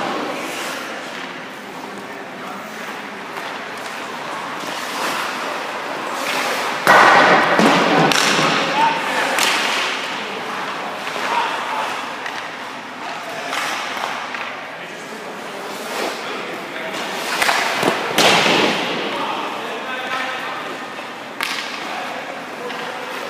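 Ice skates scrape and hiss on the ice in a large echoing rink.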